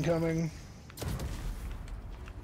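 Explosions boom in quick succession.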